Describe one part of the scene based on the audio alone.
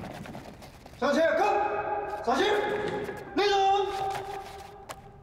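A group of men shout together in unison, echoing.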